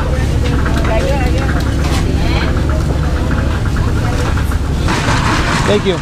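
A woman talks with customers nearby.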